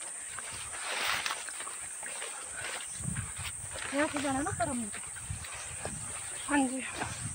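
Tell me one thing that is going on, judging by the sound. Footsteps swish through tall leafy plants.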